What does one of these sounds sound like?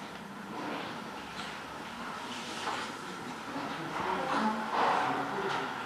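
A newborn baby whimpers and fusses.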